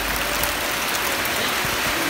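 Muddy floodwater rushes past.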